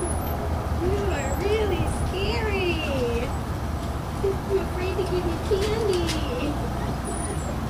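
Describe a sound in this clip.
A woman speaks cheerfully nearby.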